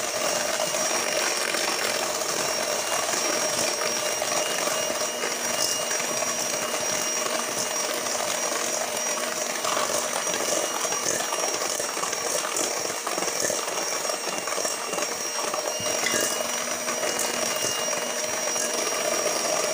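An electric hand mixer whirs steadily in a metal bowl.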